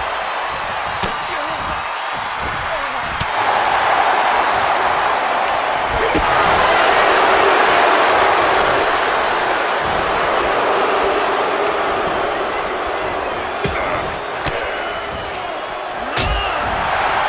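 Blows land with sharp thuds.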